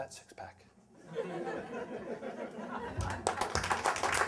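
An audience laughs.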